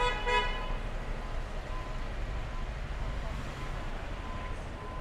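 Traffic rumbles along a city street in the distance.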